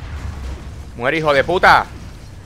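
A man speaks with animation into a close microphone.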